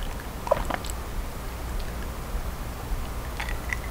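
A young woman gulps down a drink.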